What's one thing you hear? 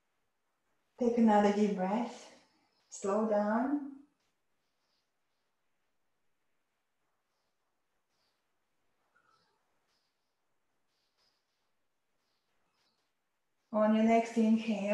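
A woman speaks calmly and softly, close to the microphone.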